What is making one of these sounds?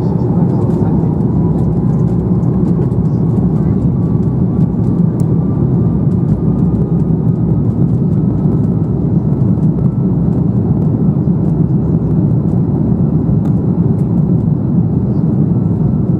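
Jet engines roar steadily from inside an aircraft cabin.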